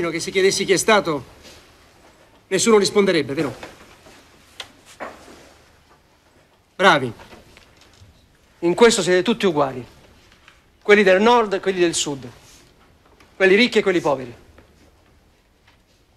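A man speaks firmly and calmly, close by.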